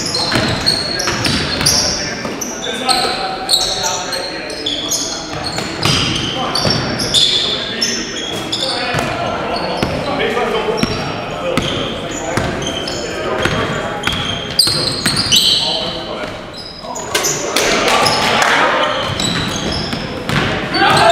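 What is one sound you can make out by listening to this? Young men call out to each other during a game.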